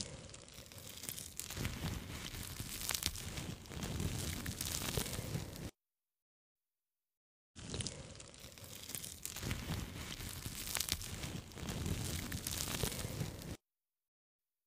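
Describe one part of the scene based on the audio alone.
A squishy toy crinkles and squelches close to a microphone.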